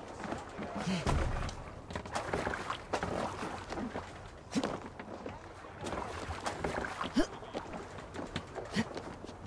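Oars splash through water.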